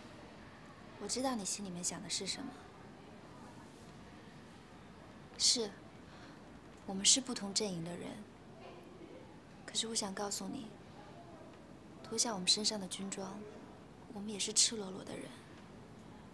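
A young woman speaks softly and earnestly.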